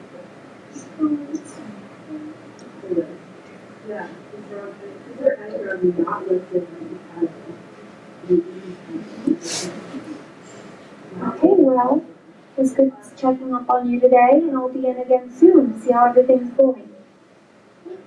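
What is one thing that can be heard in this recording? A young man speaks quietly and calmly nearby.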